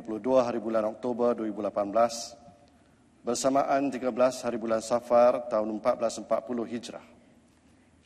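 A man reads out solemnly through a microphone.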